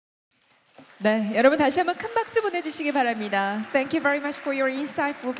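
A woman speaks calmly into a microphone, heard through loudspeakers in a large hall.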